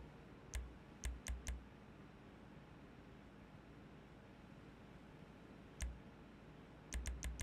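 Short electronic menu clicks sound several times.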